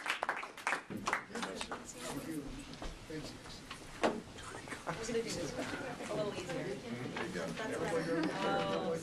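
Men and women chat quietly nearby.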